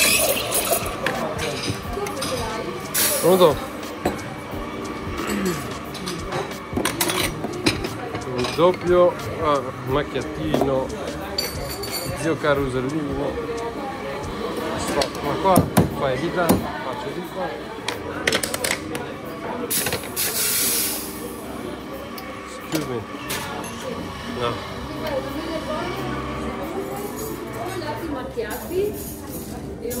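Ceramic cups clink and clatter on metal.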